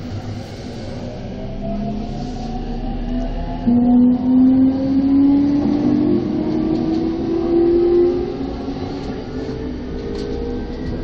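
A train's motors whine, rising in pitch as it speeds up.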